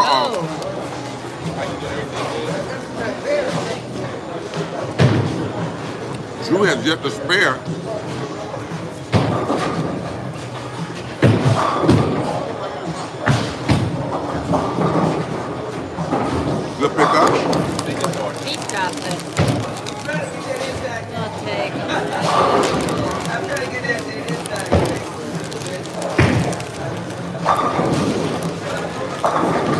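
Bowling balls roll down lanes and crash into pins.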